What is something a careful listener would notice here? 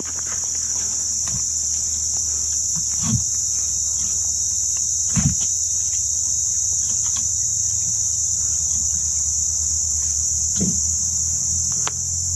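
A wooden pole knocks against a log.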